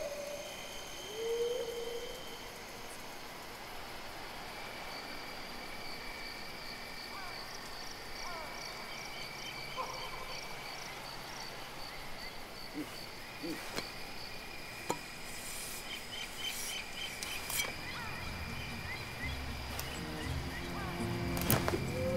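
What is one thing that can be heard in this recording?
Birds chirp and call in the distance.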